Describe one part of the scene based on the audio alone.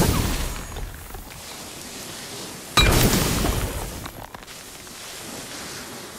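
Ice cracks and splinters.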